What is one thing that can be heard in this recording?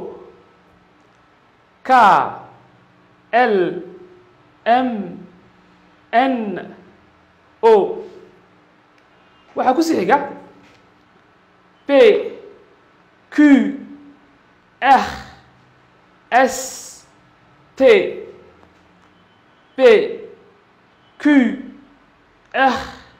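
A man speaks clearly into a close microphone, saying short syllables one at a time with pauses between them.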